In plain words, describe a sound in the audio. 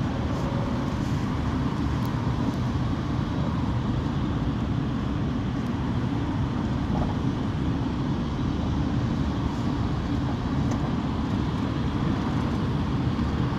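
Other vehicles pass close by on the road.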